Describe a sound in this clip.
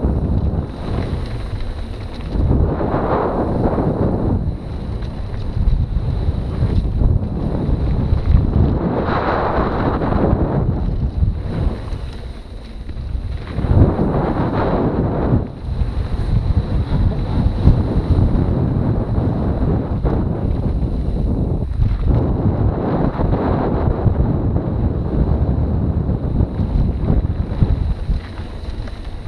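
Wind rushes loudly past, rising and falling in gusts.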